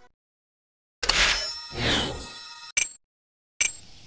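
A bright game chime rings as a reward is collected.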